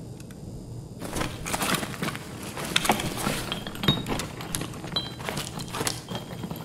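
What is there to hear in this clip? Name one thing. Gear rustles and clatters as items are searched and moved.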